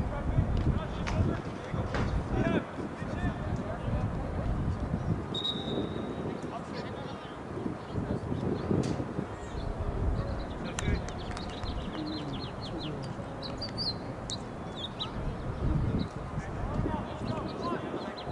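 Wind blows across an open field outdoors.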